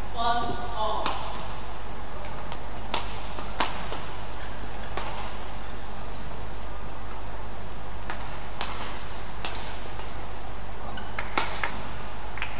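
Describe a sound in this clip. Rackets smack a shuttlecock back and forth in sharp hits.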